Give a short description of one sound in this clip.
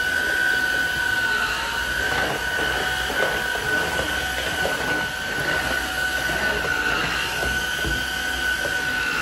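A cordless vacuum cleaner whirs steadily with a high motor whine.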